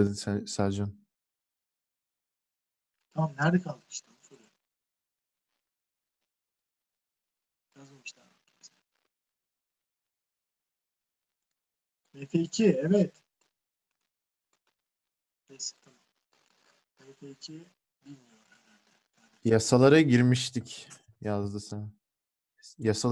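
A man speaks calmly into a close microphone, pausing often.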